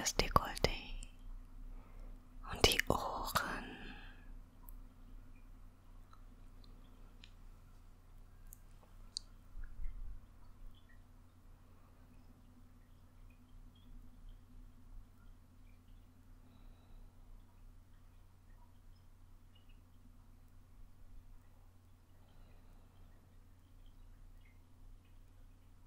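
Fingers squish and rustle through wet hair close by.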